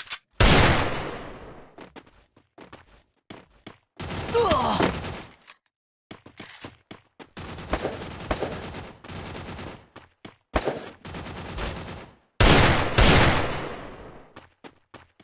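Footsteps patter quickly on hard ground.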